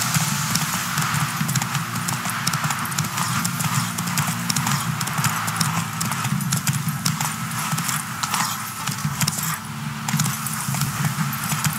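Horse hooves thud quickly on a dirt path at a steady gallop.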